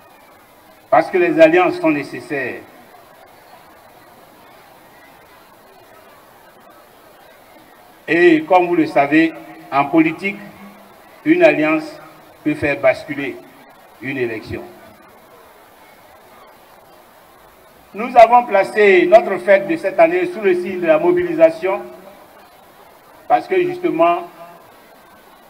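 An elderly man speaks slowly into a microphone over a loudspeaker, with long pauses.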